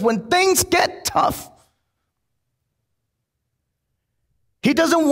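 A man speaks with animation through a microphone.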